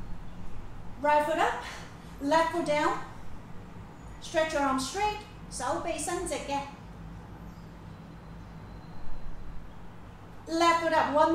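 A young woman speaks calmly close by, in short phrases.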